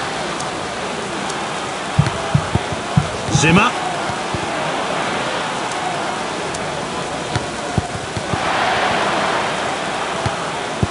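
A stadium crowd roars steadily and swells louder for a few seconds.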